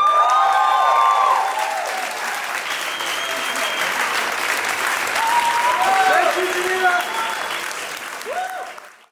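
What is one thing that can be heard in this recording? A crowd cheers and whoops loudly.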